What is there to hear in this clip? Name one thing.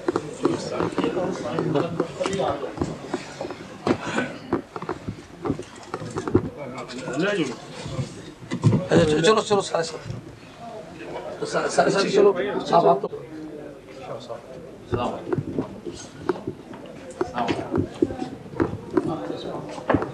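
Footsteps shuffle through a narrow passage.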